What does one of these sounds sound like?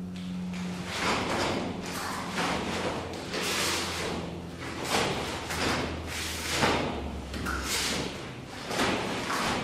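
A martial arts uniform snaps sharply with quick punches and blocks.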